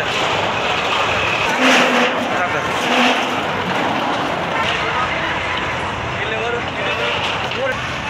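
Metal sheets crash and clatter as they are torn down.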